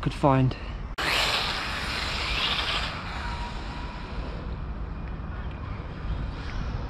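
Small tyres hiss and rumble over rough asphalt.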